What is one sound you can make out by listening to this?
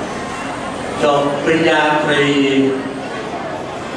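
An elderly man speaks calmly into a microphone through loudspeakers.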